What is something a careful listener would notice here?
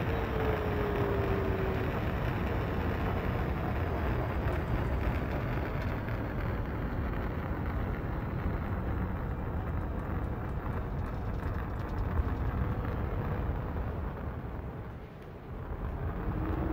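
A spacecraft engine roars with a steady, deep rumble.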